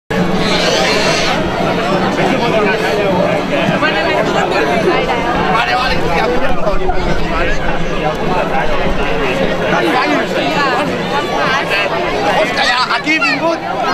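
A crowd of people chatter and call out loudly outdoors.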